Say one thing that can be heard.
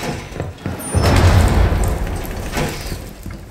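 A loud explosion booms and debris rattles.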